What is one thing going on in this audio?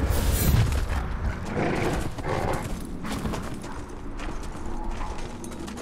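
A large beast's heavy footsteps thud as it runs over the ground.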